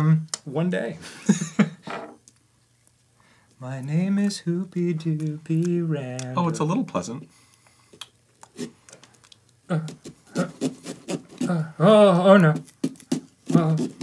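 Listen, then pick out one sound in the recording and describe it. A man crunches on a crisp chip.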